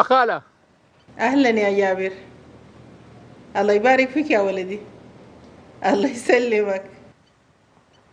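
A middle-aged woman talks calmly on a phone.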